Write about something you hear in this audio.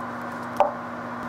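A pastry brush dabs softly on dough.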